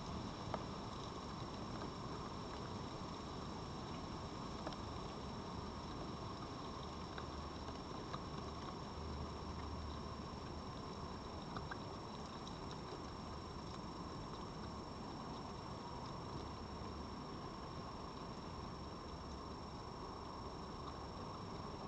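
A fox laps and eats from a bowl close by.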